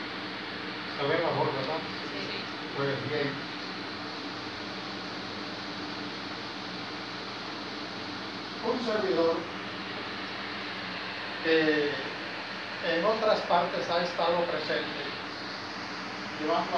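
An elderly man speaks calmly into a microphone over a loudspeaker, with pauses.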